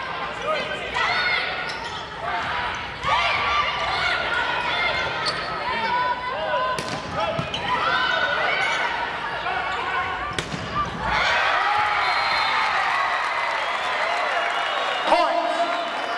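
A volleyball smacks sharply off hands and arms.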